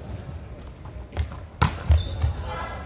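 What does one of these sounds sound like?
A volleyball is hit with a slap.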